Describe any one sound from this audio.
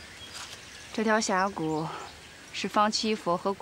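A young woman speaks calmly and clearly nearby.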